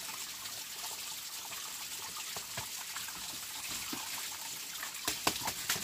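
Water splashes and trickles into a bamboo trough.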